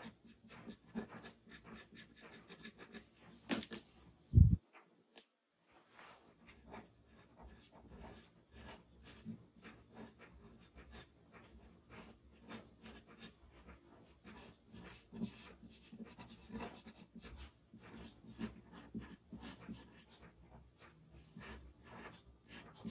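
Charcoal scratches and rubs softly on paper in quick, short strokes.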